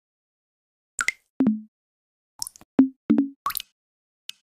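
Water plops and splashes.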